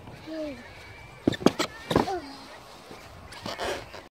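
A plastic sled scrapes over snow.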